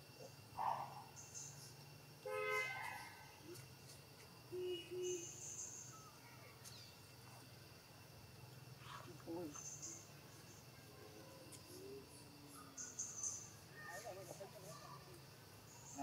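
Dry leaves rustle as monkeys move on the ground.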